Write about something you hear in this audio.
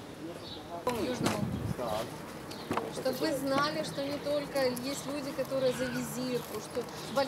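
A man speaks calmly to a group of women nearby.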